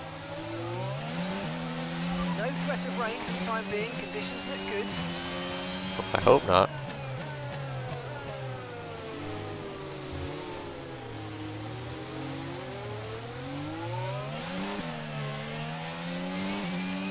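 A racing car engine whines, rising and falling in pitch as it speeds up and slows down.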